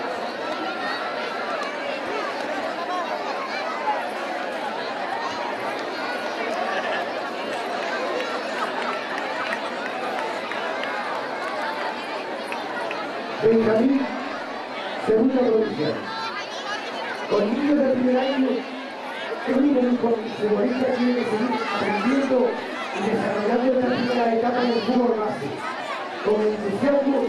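A crowd of adults and children chatters nearby outdoors.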